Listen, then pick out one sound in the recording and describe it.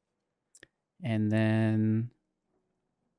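A young man draws out a long word in a sing-song voice.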